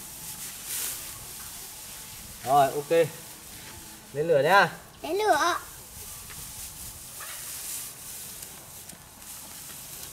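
Dry straw rustles as it is piled up by hand.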